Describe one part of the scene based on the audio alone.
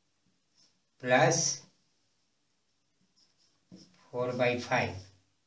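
An elderly man explains calmly, in short phrases.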